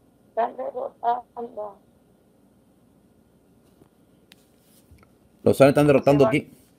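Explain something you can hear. A middle-aged woman speaks close to a phone microphone, in short bursts.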